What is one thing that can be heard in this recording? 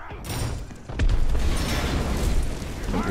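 A heavy stone wall crashes and crumbles apart.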